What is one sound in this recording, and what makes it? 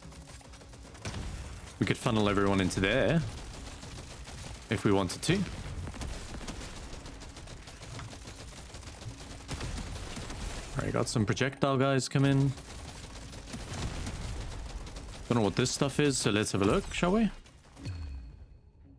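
Rapid gunfire and blasts crackle continuously.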